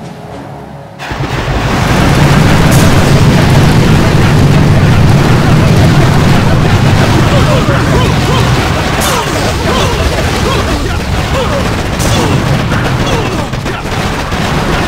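Rapid gunfire crackles in a busy battle.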